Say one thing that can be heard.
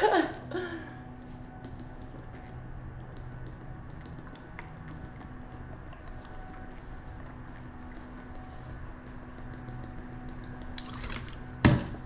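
A young woman gulps water from a bottle.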